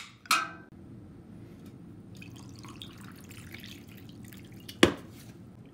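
Liquid pours from a can over ice into a glass.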